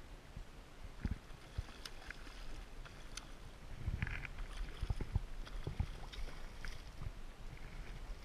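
A hooked fish splashes at the surface of the water.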